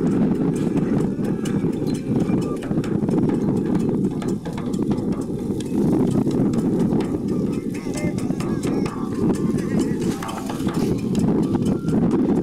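A drum is struck in a steady rhythm.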